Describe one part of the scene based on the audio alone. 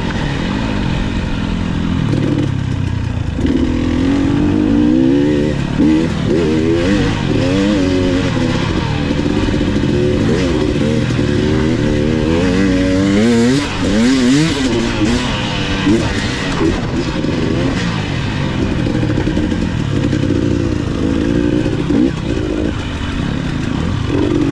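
A dirt bike engine revs and drones up and down throughout.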